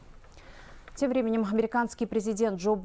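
A young woman reads out calmly and clearly into a microphone.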